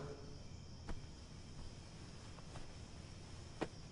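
A book's pages rustle as a man leafs through it.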